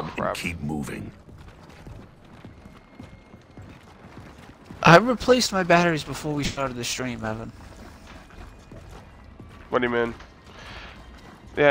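Heavy boots thud on stone as soldiers walk.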